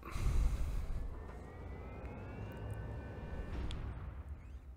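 A mechanical whine rises as a robot powers up.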